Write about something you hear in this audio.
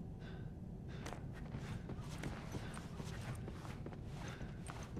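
Soft footsteps shuffle across a floor.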